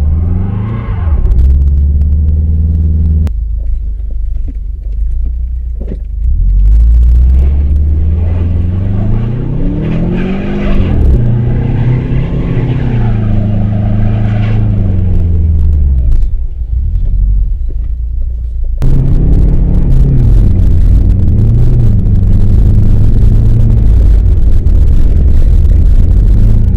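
A car engine revs up and down as it drives.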